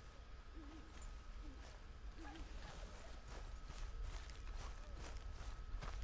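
Footsteps brush through grass.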